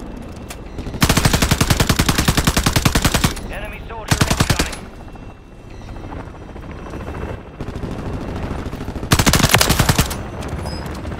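An automatic rifle fires rapid, loud bursts.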